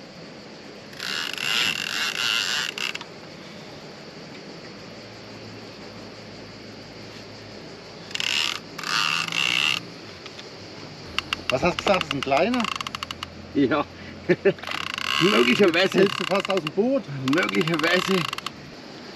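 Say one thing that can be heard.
A fishing reel's drag buzzes in short bursts as line is pulled out.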